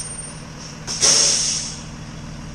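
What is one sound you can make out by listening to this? Air brakes hiss loudly on a school bus.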